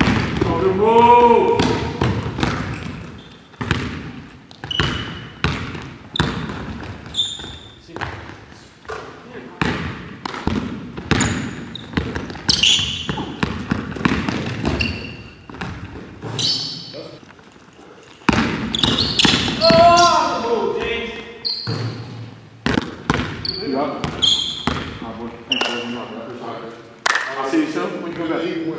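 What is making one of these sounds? A basketball bounces on a hard floor in an echoing hall.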